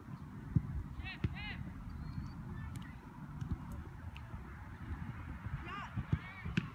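Young players call out to each other across an open field in the distance.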